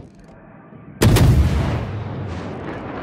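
Heavy naval guns fire with a loud, rumbling boom.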